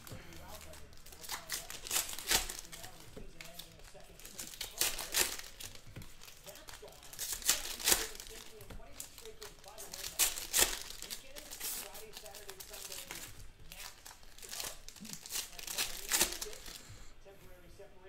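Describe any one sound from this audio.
Plastic wrappers crinkle and rustle as packs are torn open.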